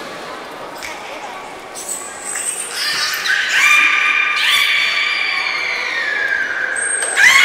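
Water splashes as whales surface.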